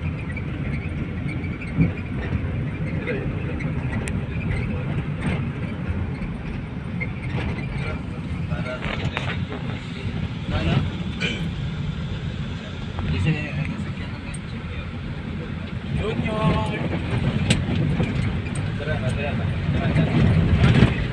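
A van engine hums steadily with road noise while driving.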